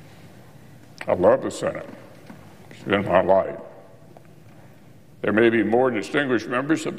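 An elderly man speaks slowly and deliberately into a microphone.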